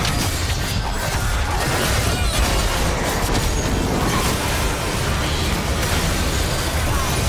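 Magic spells crackle and burst in a fast, busy battle.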